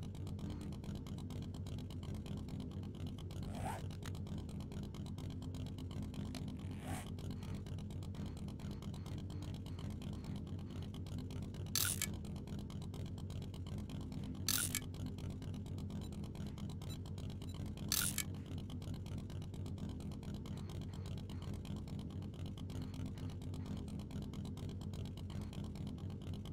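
A motorcycle engine drones as the bike rides along.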